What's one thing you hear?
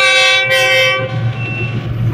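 A diesel locomotive sounds its horn loudly.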